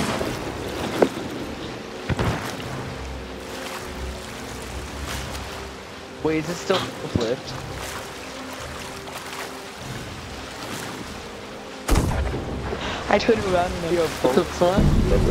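Ocean waves slosh and roll around close by.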